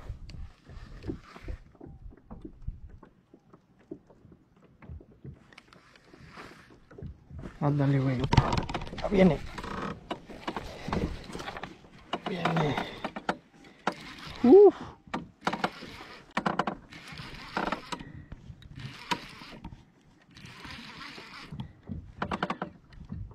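A fishing reel ticks and whirs as line is wound in.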